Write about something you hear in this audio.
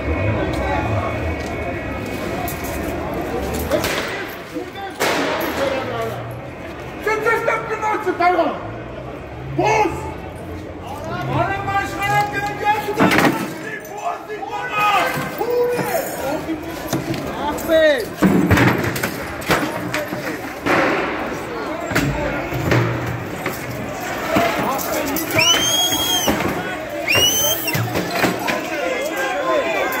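A crowd of men shout and chant loudly outdoors.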